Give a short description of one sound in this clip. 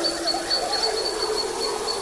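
A toddler babbles.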